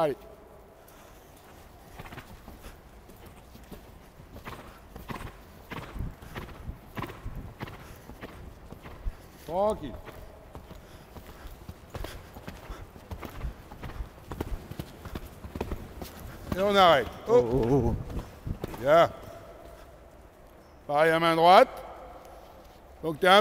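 A horse's hooves thud on soft sand at a canter.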